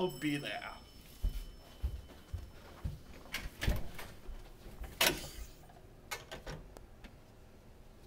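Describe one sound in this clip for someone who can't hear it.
Footsteps walk along a hallway.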